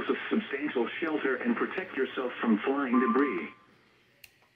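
A radio plays a voice talking through a small speaker.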